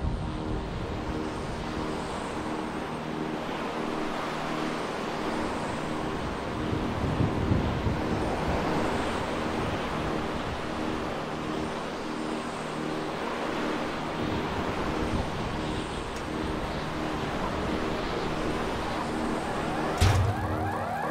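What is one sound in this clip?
Wind rushes steadily past a bicycle falling through the air.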